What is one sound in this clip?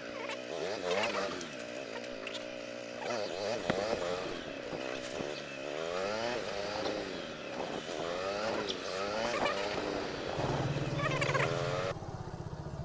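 A motorcycle engine revs up and down as it rides through gears, close by.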